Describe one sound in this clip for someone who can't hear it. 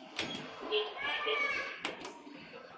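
An elevator chime rings out.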